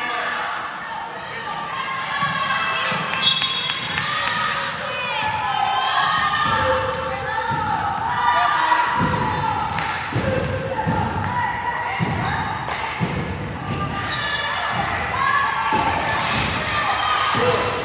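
Young girls call out and chatter nearby.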